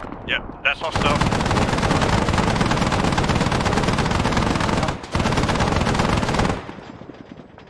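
A helicopter flies overhead with a loud, rapid chopping roar.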